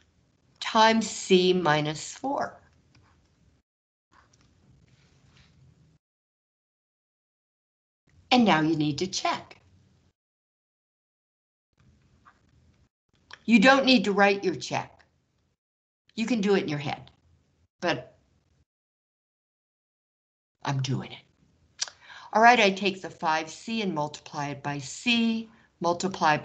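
A woman explains calmly, heard through a microphone, with pauses.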